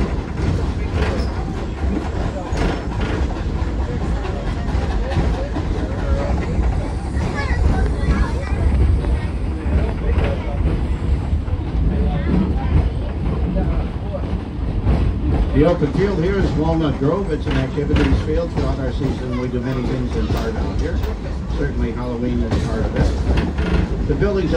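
An open train car rumbles and clatters steadily along a track.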